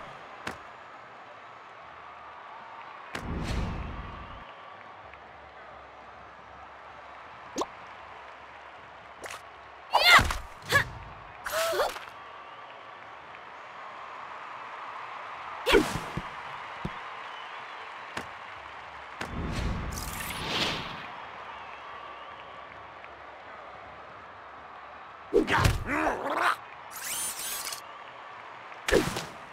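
Short game sound effects burst out now and then over a low steady hum.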